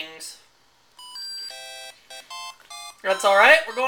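An electronic game plays a quick run of short beeping tones.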